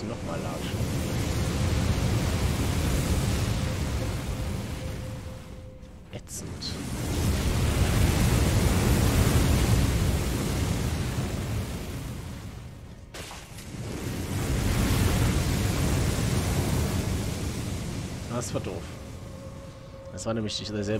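Fire roars in loud, swelling blasts that rise and fade.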